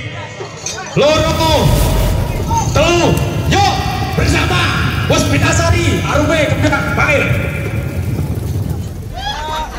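A drum band beats drums loudly.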